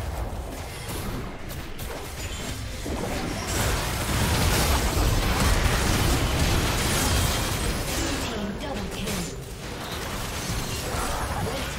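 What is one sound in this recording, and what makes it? Magical blasts crackle and burst in a rapid clash.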